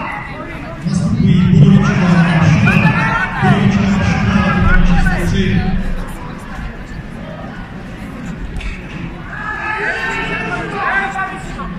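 Several people shout and call out in a large echoing hall.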